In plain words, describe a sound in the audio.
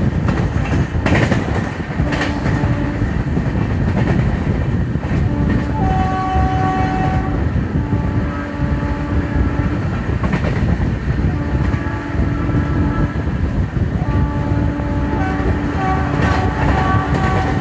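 Wind rushes loudly past an open train window.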